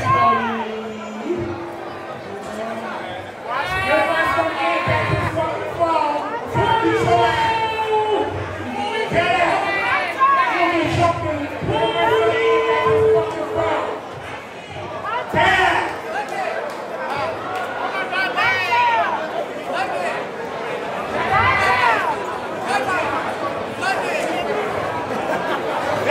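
A crowd chatters and cheers in the background.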